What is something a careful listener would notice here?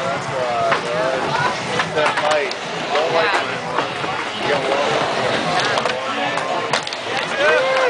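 A skateboard clatters against wood.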